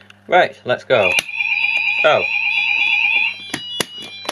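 A fire alarm sounder wails with a fast warbling tone.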